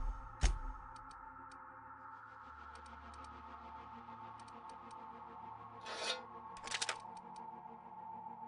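Menu selection sounds click softly several times.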